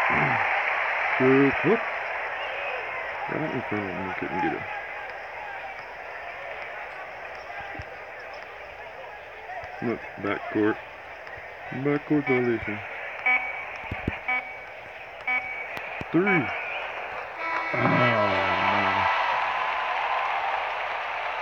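A large crowd cheers and murmurs steadily in an arena.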